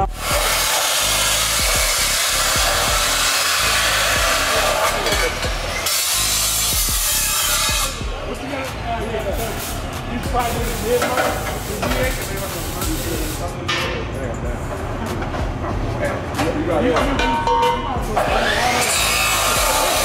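An abrasive saw screams loudly as it cuts through metal.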